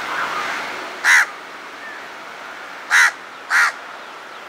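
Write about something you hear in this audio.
A crow caws loudly and harshly, close by.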